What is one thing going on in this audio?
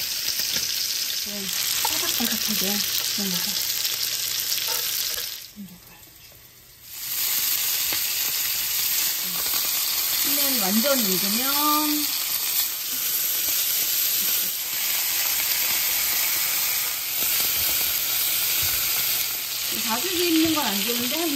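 Food sizzles loudly in a hot pan.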